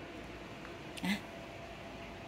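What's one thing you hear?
A young kitten gives a short, soft mew.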